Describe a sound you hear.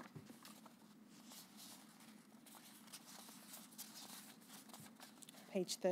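Paper rustles as pages are handled.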